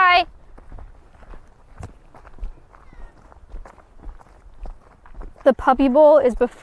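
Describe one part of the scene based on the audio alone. A young girl talks with animation close to a microphone.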